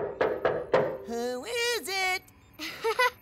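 A young woman speaks cheerfully over a video call.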